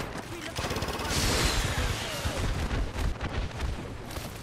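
Explosions rumble and boom in the distance.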